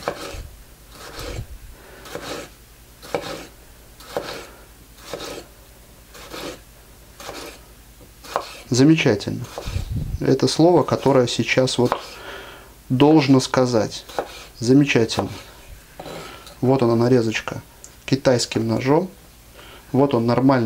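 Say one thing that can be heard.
A knife cuts through a tomato and taps on a wooden board.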